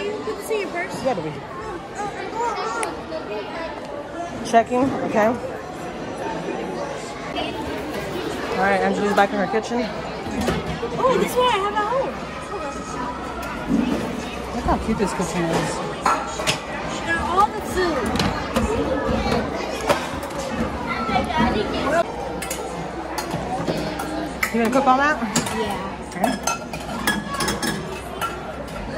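Children and adults chatter nearby.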